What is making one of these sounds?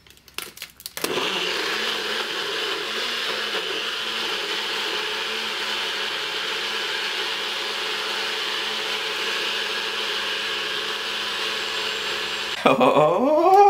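A blender motor whirs steadily at high speed.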